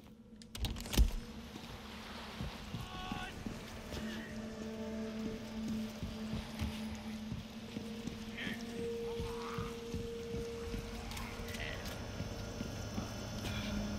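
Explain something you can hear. Footsteps thud on wood and stone.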